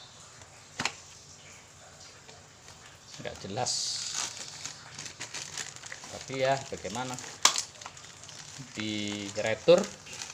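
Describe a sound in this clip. Cardboard scrapes and rubs as a box is opened and its contents are slid out.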